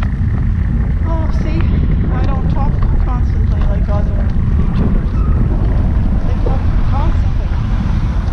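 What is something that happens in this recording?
An elderly woman talks calmly close to the microphone.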